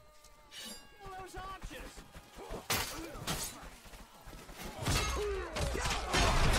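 Men grunt and cry out in combat.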